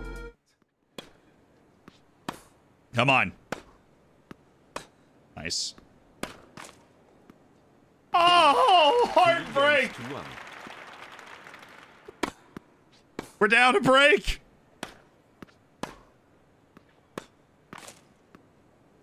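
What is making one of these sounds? Tennis balls are struck with sharp pops.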